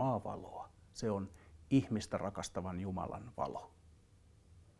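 A man speaks calmly and clearly into a close microphone.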